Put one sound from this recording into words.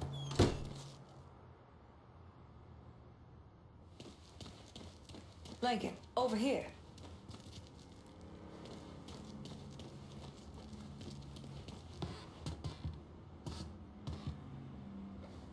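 Footsteps walk slowly indoors.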